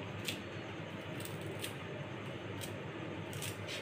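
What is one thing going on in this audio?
Scissors snip close by.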